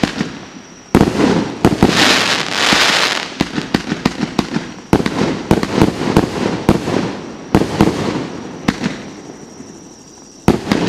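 Fireworks crackle and sizzle after the bursts.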